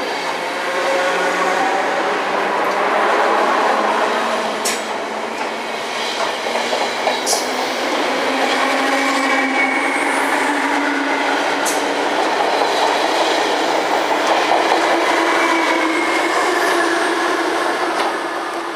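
A train rumbles and squeals past close by.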